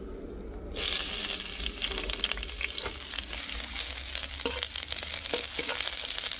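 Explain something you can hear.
A metal spatula scrapes and clinks against a frying pan.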